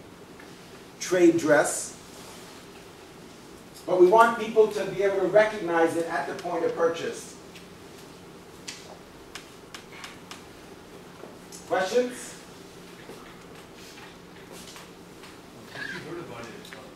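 A man speaks calmly in a small room, pausing between phrases.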